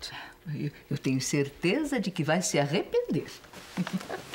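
An elderly woman speaks with playful animation, close by.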